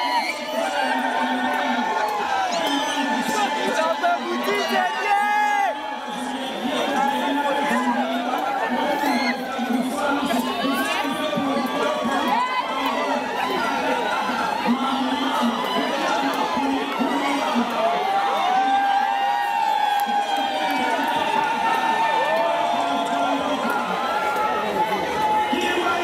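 A large choir of men and women sings together.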